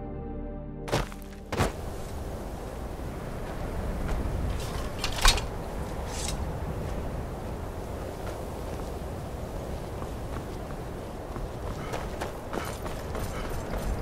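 Wind blows steadily.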